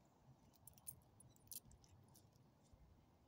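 A small dog chews and gnaws on something close by.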